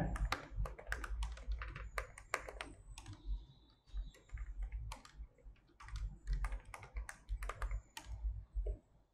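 Keys click on a keyboard.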